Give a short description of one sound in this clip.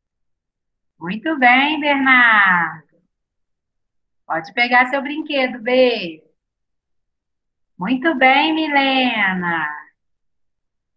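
A young woman speaks calmly into a microphone over an online call, in short phrases with pauses.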